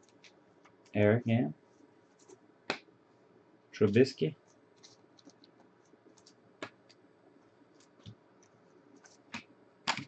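Plastic-wrapped trading cards crinkle and slide as they are flipped by hand.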